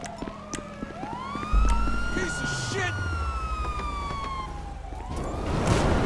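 A police siren wails nearby.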